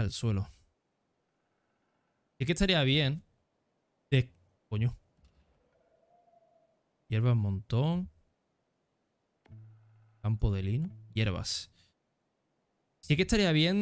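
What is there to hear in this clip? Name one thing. A young man talks in bursts, close to a microphone.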